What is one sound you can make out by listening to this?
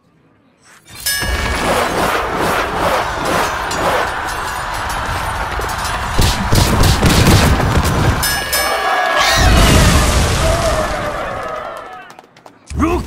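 A loud magical blast roars and crackles, then dies away.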